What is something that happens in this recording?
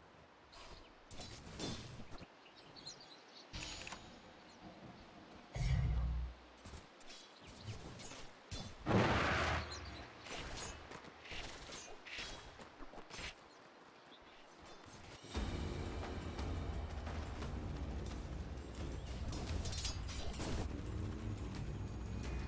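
Weapons clash and spells burst in a fantasy battle.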